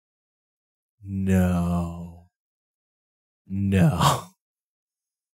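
A man laughs into a close microphone.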